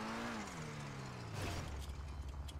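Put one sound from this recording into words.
A sports car engine idles and winds down.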